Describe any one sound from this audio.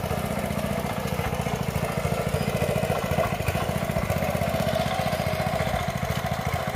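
A small petrol engine putters rapidly and steadily nearby.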